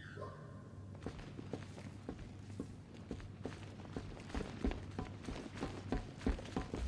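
Heavy footsteps thud on a metal floor.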